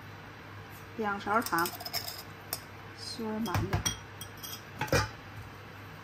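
A metal spoon scrapes and clinks against a glass jar.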